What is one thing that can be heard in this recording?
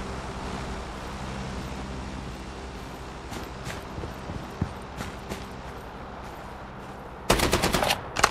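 Footsteps run over dirt and gravel.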